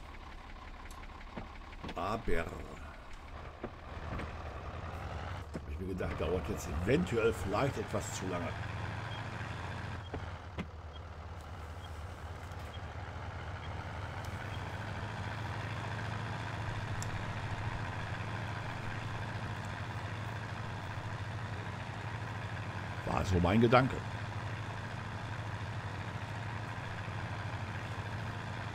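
A tractor engine hums steadily at a low pitch.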